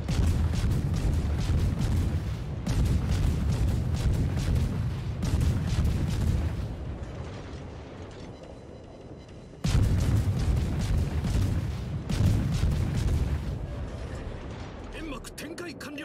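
Shells explode with deep rumbling blasts.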